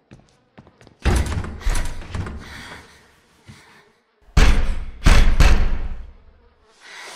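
A girl bangs her fists hard on a wooden door.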